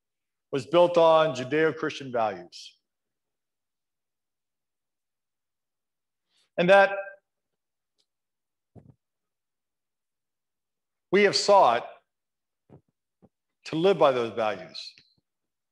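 An elderly man speaks calmly in short phrases, with pauses between them.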